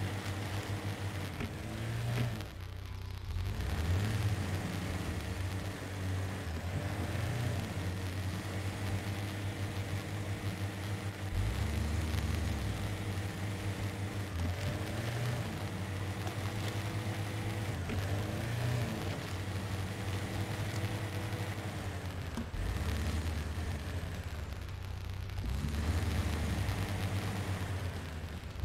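Tyres crunch over rocky ground.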